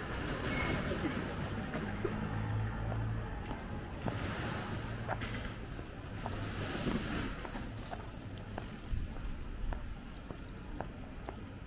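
Footsteps tap steadily on pavement outdoors.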